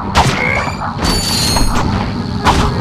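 A bright electronic chime rings out.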